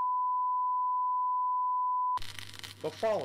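A steady test tone beeps.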